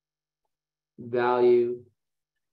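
A man speaks briefly through a computer microphone.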